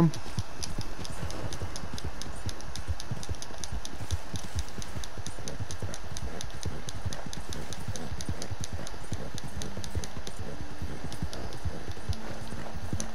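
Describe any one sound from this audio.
Horse hooves thud in a quick, steady gallop over soft ground.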